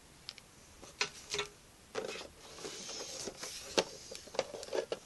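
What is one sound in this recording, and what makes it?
Cardboard and plastic packaging rustle and knock as a box is unpacked.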